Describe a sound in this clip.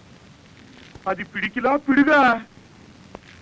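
An older man speaks with animation.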